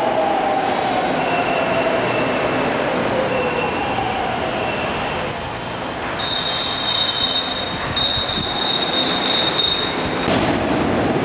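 Train brakes squeal in high tones.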